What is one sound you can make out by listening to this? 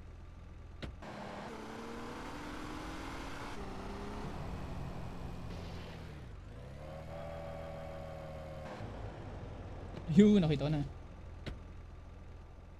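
A car engine starts and revs as the car drives off.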